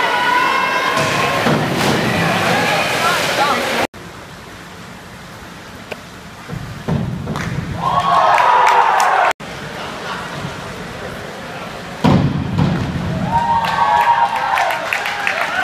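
A diver plunges into the water with a splash in an echoing indoor pool.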